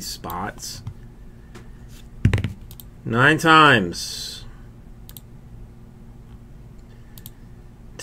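A computer mouse clicks a few times.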